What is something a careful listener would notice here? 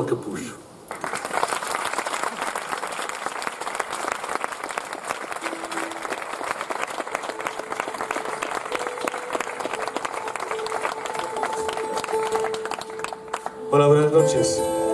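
Acoustic guitars play a lively tune through loudspeakers.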